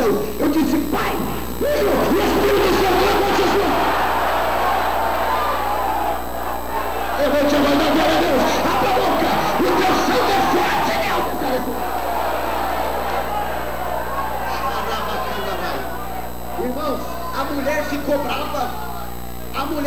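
A man shouts with passion through a microphone and loudspeakers.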